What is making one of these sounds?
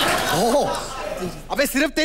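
A woman exclaims loudly in surprise.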